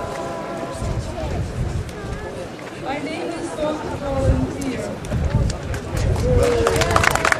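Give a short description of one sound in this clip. A young girl speaks into a microphone through a loudspeaker outdoors.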